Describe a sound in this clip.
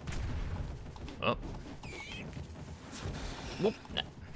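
A sword swings and strikes enemies.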